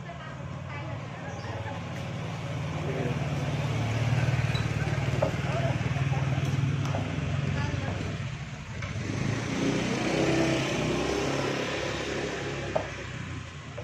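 A motorbike engine hums as it passes close by.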